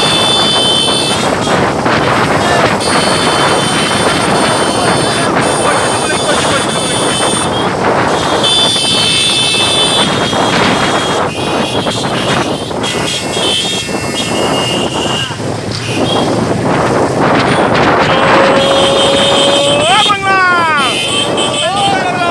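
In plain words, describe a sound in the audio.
Motorcycle engines hum and rumble steadily nearby.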